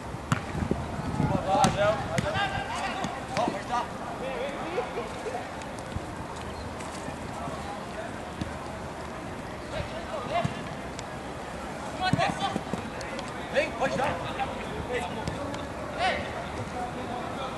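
Young men shout to each other during a football match outdoors.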